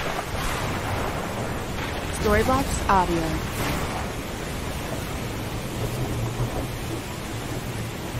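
Strong wind blows steadily outdoors.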